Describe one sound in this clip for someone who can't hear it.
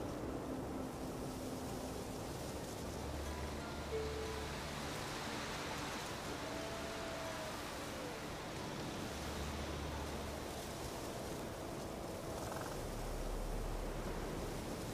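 Wind blows steadily through trees outdoors.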